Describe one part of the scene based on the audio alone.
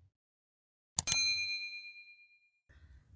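A small bell chimes and rings out, slowly fading.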